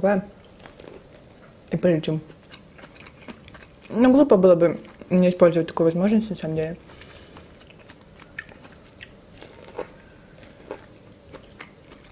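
A young woman bites into corn with crisp crunches.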